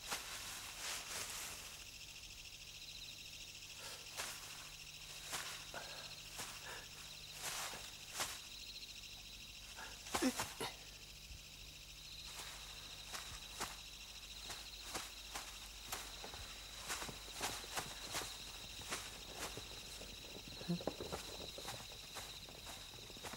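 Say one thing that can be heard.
Footsteps crunch and rustle through dry leaves and brush.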